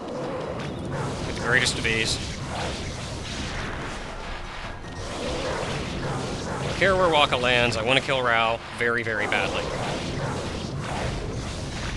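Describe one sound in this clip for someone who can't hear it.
Blades slash and swish in a fast fight.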